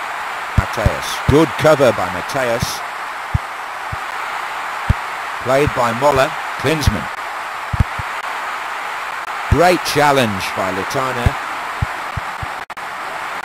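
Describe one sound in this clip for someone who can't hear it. A football is kicked with short, dull thumps.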